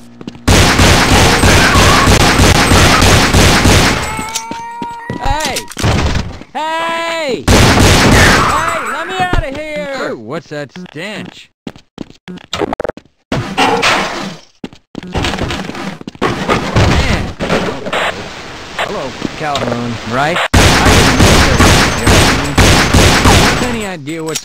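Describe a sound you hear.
A pistol fires rapid shots that ring loudly.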